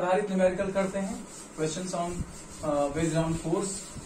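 A cloth rubs across a chalkboard.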